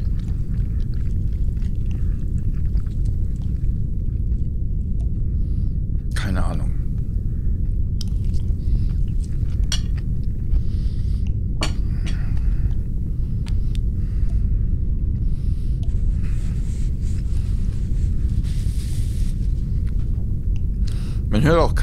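A young woman talks quietly into a microphone, close by.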